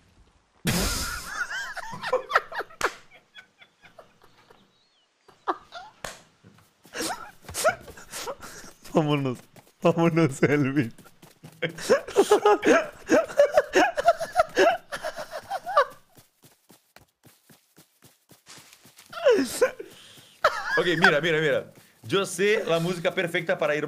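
A young man talks and laughs with animation into a close microphone.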